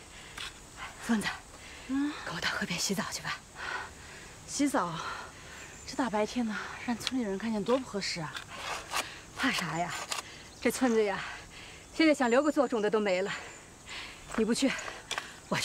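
A middle-aged woman talks cheerfully nearby.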